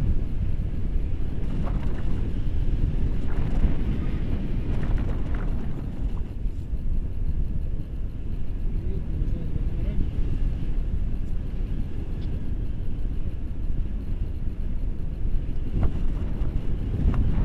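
Strong wind roars and buffets against a microphone.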